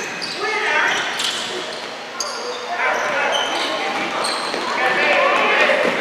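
Children shout and cheer in a large echoing hall.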